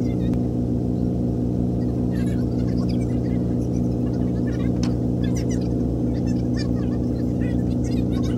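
A boat engine chugs steadily close by.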